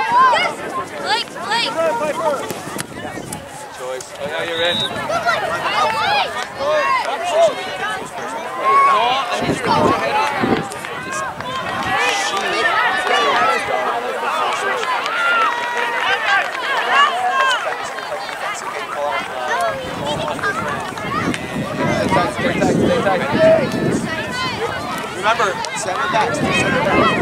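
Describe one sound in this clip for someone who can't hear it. Young players shout and call out to each other outdoors.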